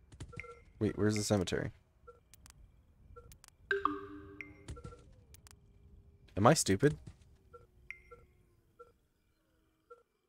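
Soft interface clicks tick now and then.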